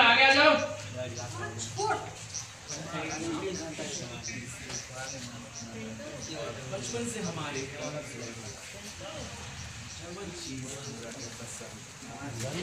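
Several men and women talk at once nearby, outdoors.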